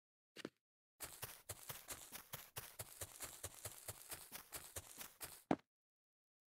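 Quick game footsteps patter on blocks.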